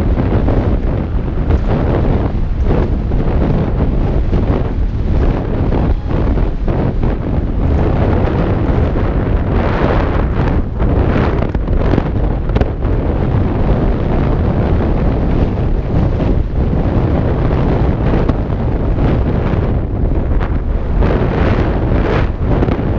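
Wind rushes loudly past, buffeting close by.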